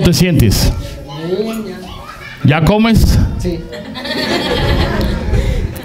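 A boy answers briefly into a microphone.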